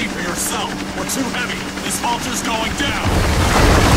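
A waterfall rushes and splashes.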